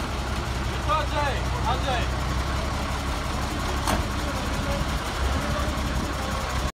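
A fire engine's diesel engine idles nearby with a low rumble.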